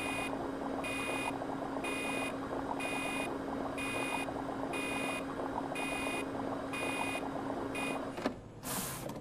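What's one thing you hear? A machine hums steadily while liquid drains through it.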